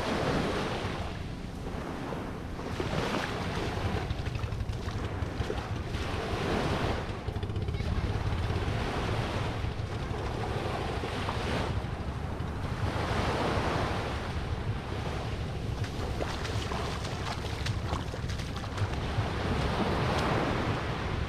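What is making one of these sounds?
Small waves wash and break on a sandy shore, outdoors.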